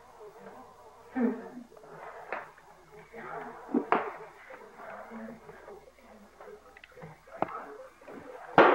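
A woman talks quietly nearby.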